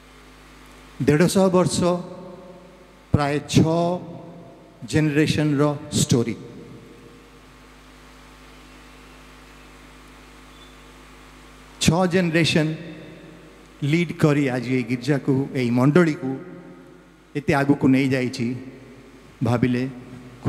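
An elderly man speaks into a microphone over loudspeakers, in short bursts with pauses.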